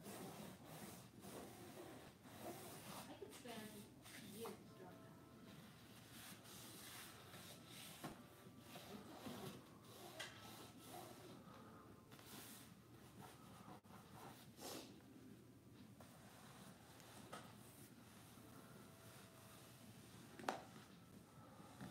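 Paper pieces rustle and crinkle as they are handled.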